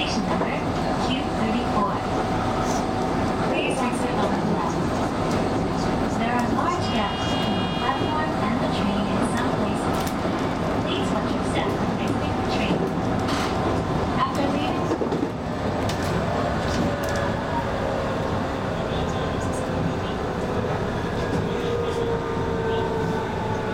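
A stationary train hums steadily.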